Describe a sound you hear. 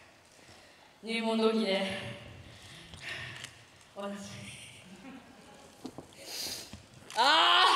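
A young woman speaks with animation through a microphone over loudspeakers in a large echoing hall.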